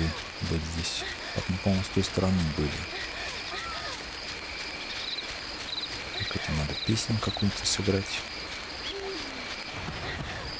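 Footsteps pad softly across grass.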